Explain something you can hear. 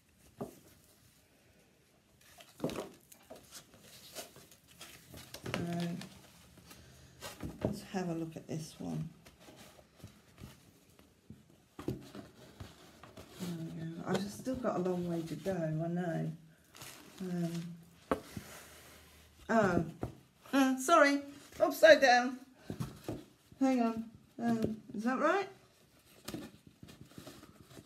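Cloth rustles as it is handled.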